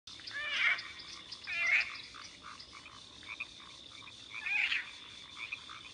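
A small creature gives high, squeaky cries.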